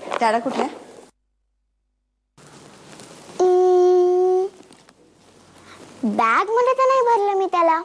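A young girl speaks with animation, close by.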